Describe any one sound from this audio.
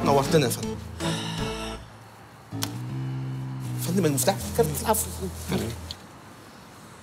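A middle-aged man laughs heartily nearby.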